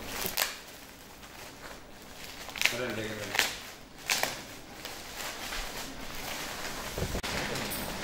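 Shiny wrapping foil crinkles and rustles under hands.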